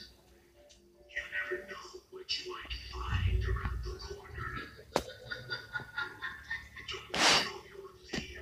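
A television plays faintly in the background.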